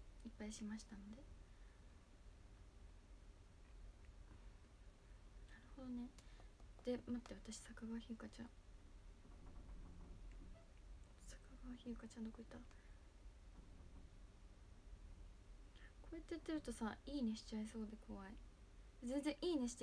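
A young woman speaks softly and calmly, close to a microphone, in short bursts with pauses.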